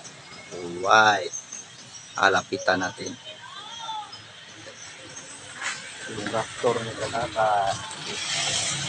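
A young man talks casually, close to the microphone.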